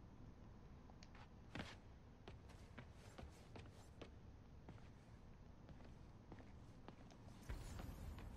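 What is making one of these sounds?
Quick footsteps patter on a concrete floor.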